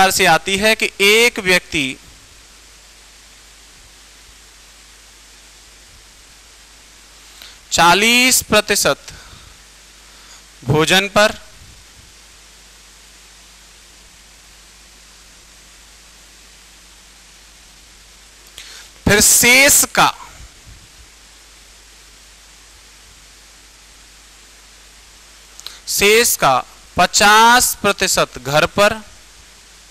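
A man speaks calmly into a close microphone in short bursts.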